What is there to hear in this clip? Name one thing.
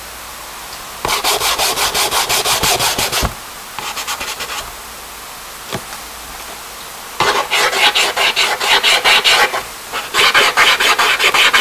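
Fingers rub briskly over paper.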